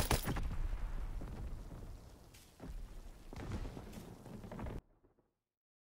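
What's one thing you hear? Anti-aircraft shells burst overhead with deep, rumbling booms.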